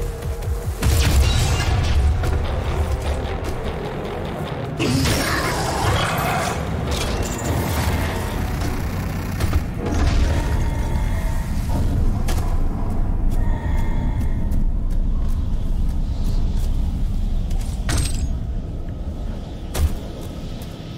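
Gunfire blasts and explosions boom.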